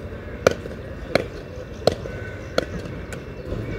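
A tennis ball bounces several times on a clay court.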